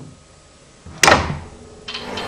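A plastic power switch clicks sharply as a finger presses it.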